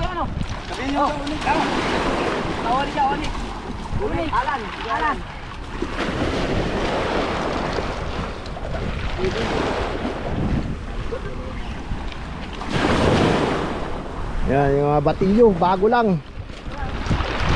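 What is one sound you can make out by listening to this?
Small waves wash onto a pebbly shore.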